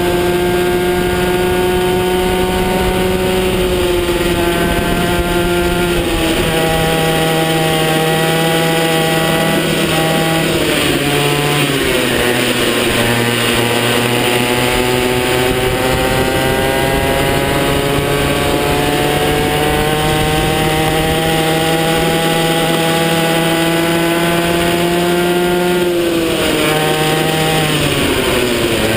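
A kart's engine buzzes loudly up close, its pitch rising and falling as it speeds up and slows down.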